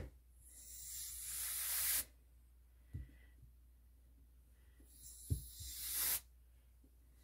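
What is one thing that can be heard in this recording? A squeeze bottle hisses and sputters as paint is pushed out.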